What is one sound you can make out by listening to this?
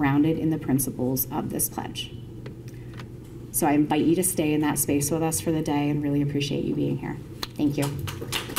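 A woman speaks into a microphone, amplified in a room.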